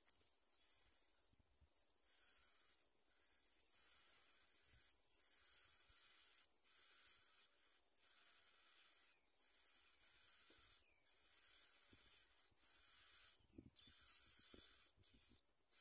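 Nestling birds beg with high, shrill, rapid cheeping in repeated bursts.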